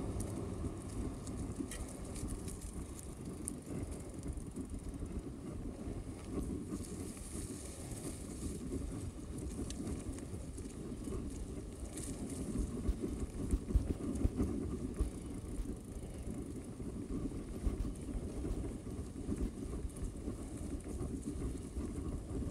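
Wind rumbles across a microphone while riding outdoors.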